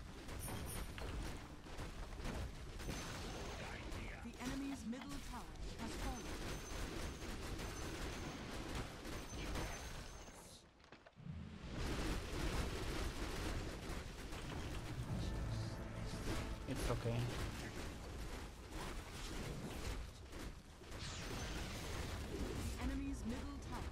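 Game battle sounds clash and crackle with spell blasts.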